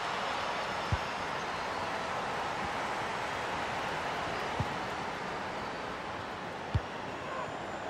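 A football is kicked with a short thud.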